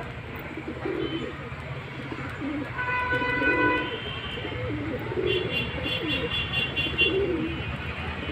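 Pigeons coo in low, throaty bursts close by.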